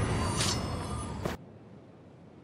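Fire effects crackle and roar in a video game fight.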